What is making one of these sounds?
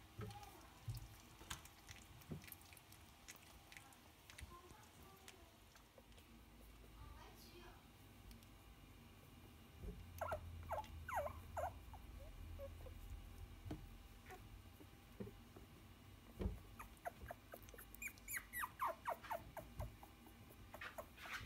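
Puppies shuffle and scratch on a blanket.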